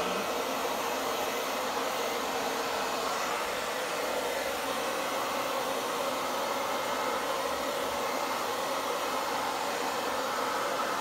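A hair dryer blows with a steady, loud whoosh close by.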